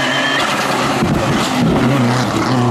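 A rally car's exhaust pops and crackles between gear changes.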